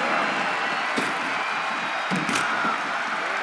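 Heavy body slams thud on a wrestling ring.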